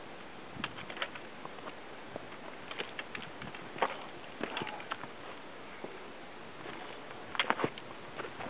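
Boots crunch and scrape on loose rock.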